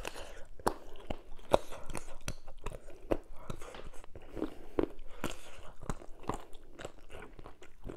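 Fingers squish through soft, wet food.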